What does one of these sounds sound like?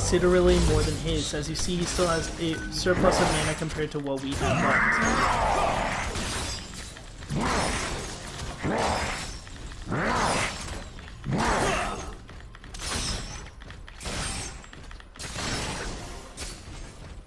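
Heavy blows and energy blasts strike again and again.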